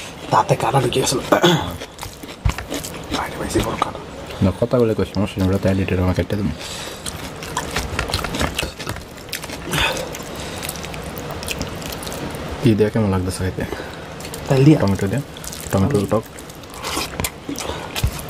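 Hands squish and mix rice with soft wet smacks close up.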